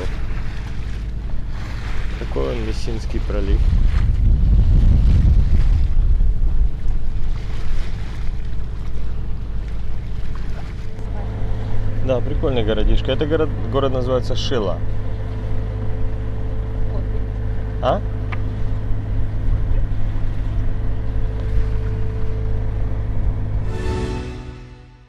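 Wind rumbles steadily outdoors on open water.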